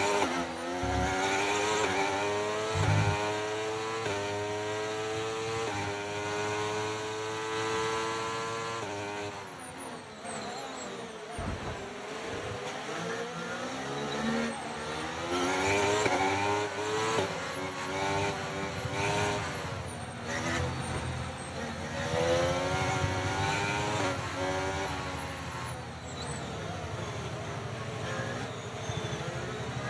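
A racing car engine screams and rises in pitch through each gear, dropping with each gear change.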